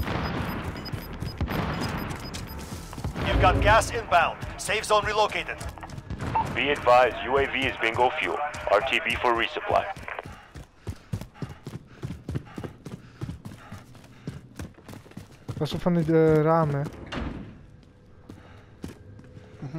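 Quick footsteps run over hard ground and wooden floors.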